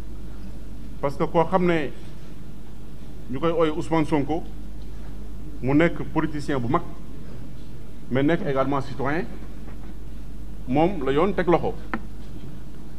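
A man reads out a statement calmly into microphones, in short phrases with pauses.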